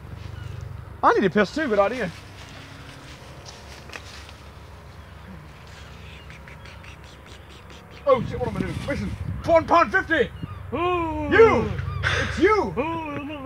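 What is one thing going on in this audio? A young man talks loudly and animatedly nearby.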